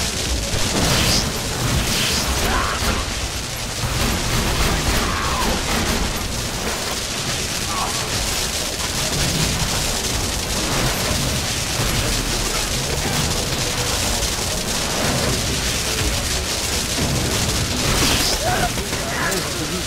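Guns fire in rapid bursts with energy zaps.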